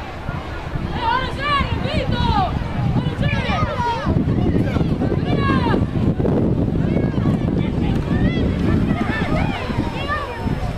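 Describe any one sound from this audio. Young players shout to one another outdoors.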